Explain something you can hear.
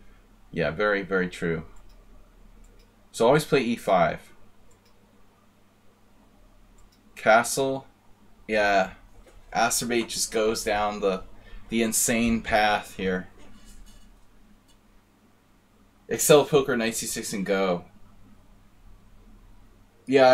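A man talks calmly and with animation into a close microphone, with pauses.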